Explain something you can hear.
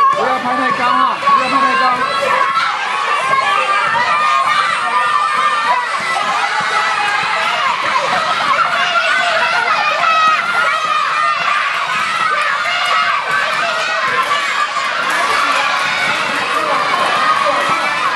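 A crowd of young children cheer and shout loudly in a large echoing hall.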